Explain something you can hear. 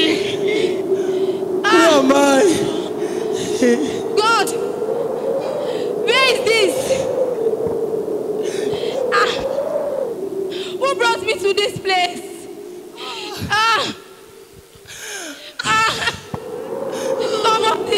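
A young woman sings and shouts with passion into a microphone, loud through loudspeakers in a large echoing hall.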